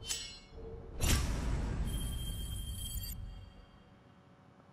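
A deep booming swell rings out and slowly fades.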